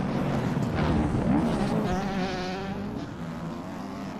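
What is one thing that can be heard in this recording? A motorbike crashes down with a thud.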